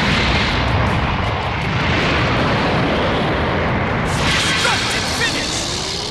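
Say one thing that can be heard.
A huge explosion roars and rumbles.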